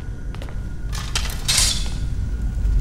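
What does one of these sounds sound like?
A metal sword is drawn with a sharp scrape.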